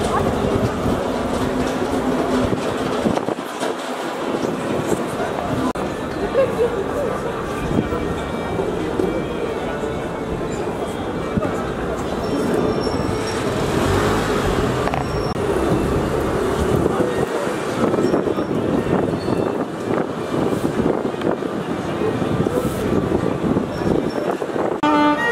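Many people chatter and murmur on a busy street outdoors.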